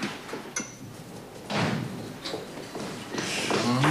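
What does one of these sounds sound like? A door clicks shut.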